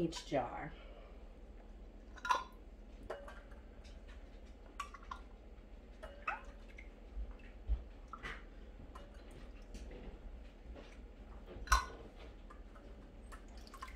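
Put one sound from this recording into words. Metal jar lids clink against glass.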